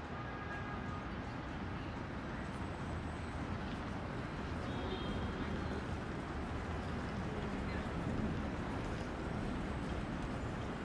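A crowd murmurs and walks along a busy street outdoors.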